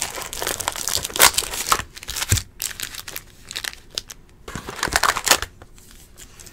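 Plastic card wrappers crinkle and rustle in hands.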